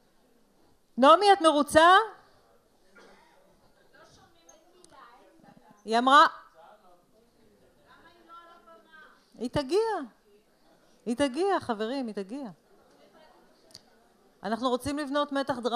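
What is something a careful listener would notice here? A woman speaks with animation into a microphone, heard through loudspeakers in a large echoing hall.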